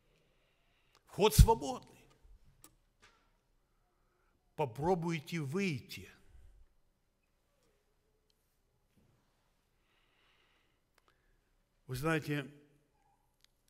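An older man speaks slowly and deliberately through a microphone, with long pauses.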